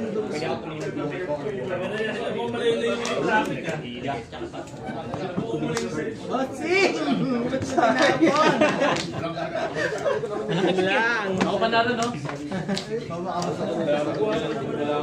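Playing cards are shuffled in hand.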